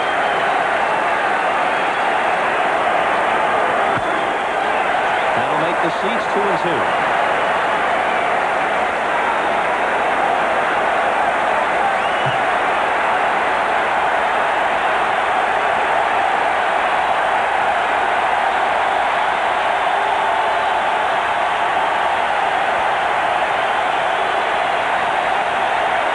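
A large stadium crowd roars and cheers loudly throughout.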